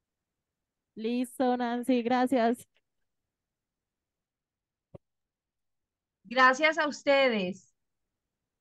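A woman speaks briefly through a microphone.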